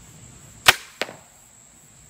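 An arrow thuds into a target.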